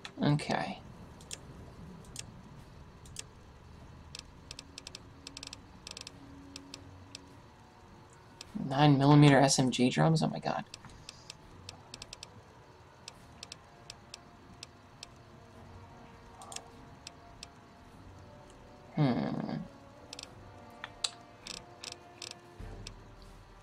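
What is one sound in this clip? Soft menu clicks tick quickly as a list scrolls.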